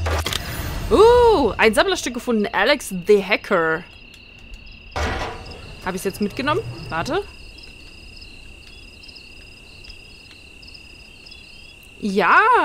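A woman speaks with animation into a nearby microphone.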